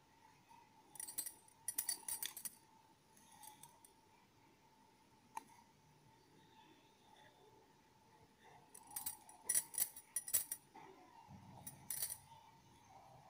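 Fingers press and rub a plastic disc against card, making light scraping and tapping sounds.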